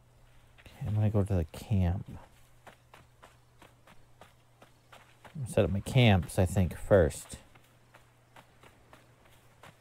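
Footsteps thud quickly on soft sand.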